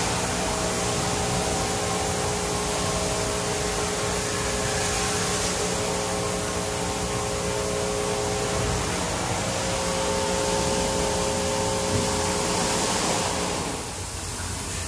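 Car wash machinery hums steadily.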